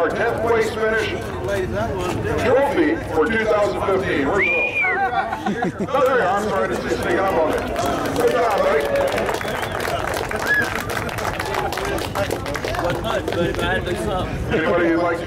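A middle-aged man speaks with animation into a handheld microphone over a loudspeaker.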